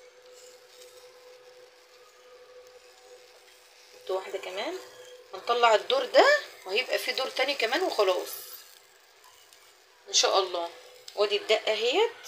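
Fish sizzles and crackles as it fries in hot oil.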